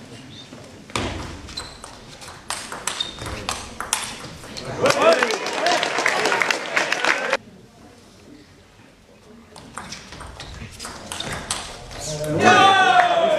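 A table tennis ball clicks quickly back and forth off paddles and the table.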